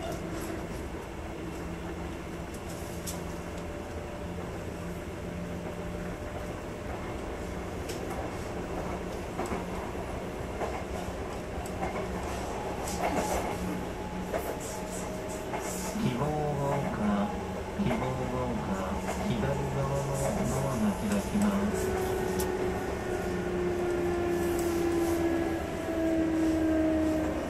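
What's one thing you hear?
An electric train hums steadily while standing.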